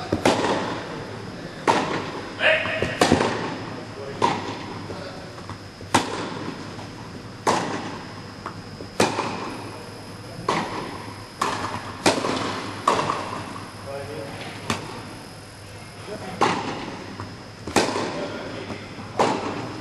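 A tennis ball bounces on the court.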